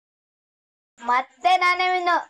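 A young boy speaks softly.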